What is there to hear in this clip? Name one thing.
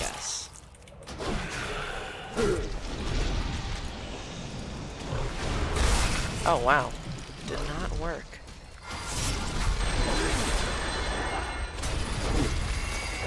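Weapon blows clang and thud against a huge rock creature.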